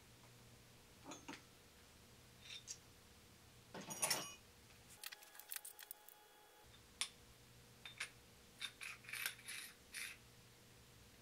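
Metal parts clink and clatter as they are handled.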